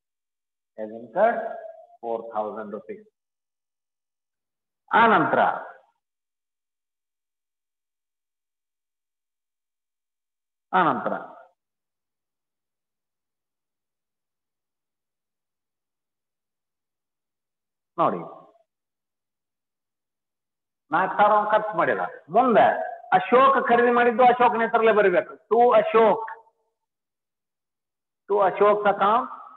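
A man speaks calmly into a clip-on microphone, in short bursts with pauses.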